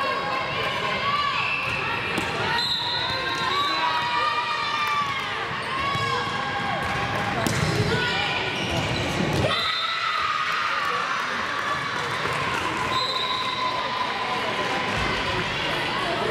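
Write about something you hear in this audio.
Young girls shout and chatter throughout a large echoing gym.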